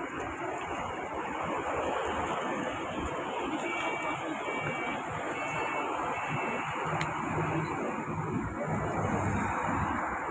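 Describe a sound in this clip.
A bus engine idles and rumbles close by.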